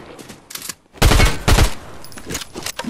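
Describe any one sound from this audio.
Shotgun blasts ring out close by.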